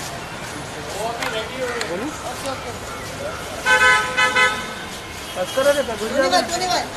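Several men call out and talk nearby with excitement.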